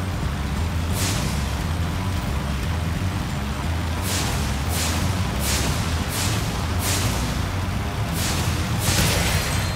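A small dragon breathes short whooshing bursts of fire.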